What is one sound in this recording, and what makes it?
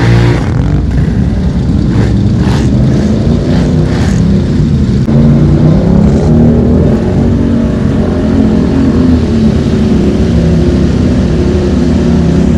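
Quad bike engines rumble and rev loudly close by.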